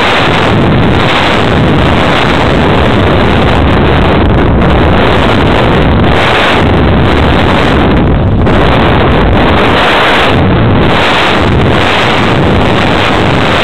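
A small propeller motor hums steadily.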